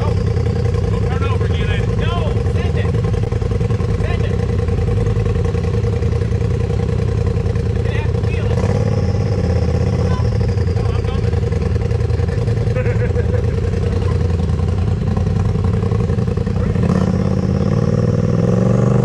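An off-road buggy's engine roars and revs loudly.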